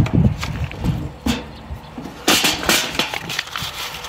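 Paper crinkles as it is crumpled.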